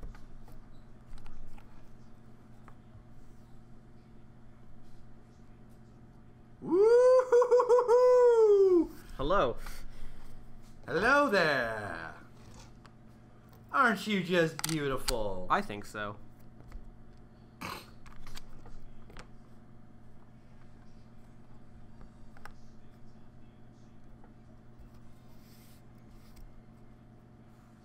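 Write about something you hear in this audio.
Small plastic pieces click and tap on a table.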